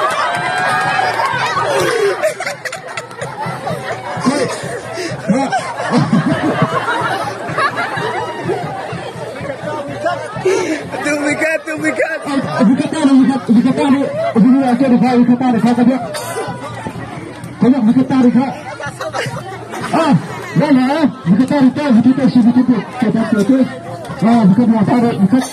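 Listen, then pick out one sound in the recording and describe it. A crowd of children and adults chatters and shouts outdoors.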